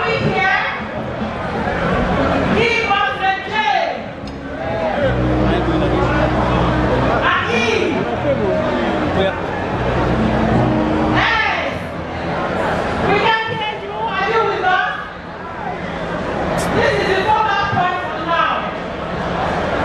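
A woman speaks with animation through a microphone and loudspeakers.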